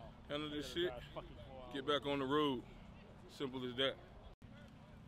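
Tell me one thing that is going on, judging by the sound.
A man speaks calmly into a microphone close by, outdoors.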